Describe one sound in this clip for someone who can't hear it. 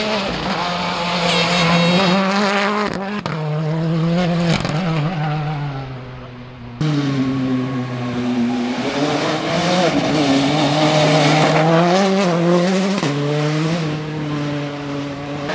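A rally car engine roars at high revs, rising and falling as it shifts gears.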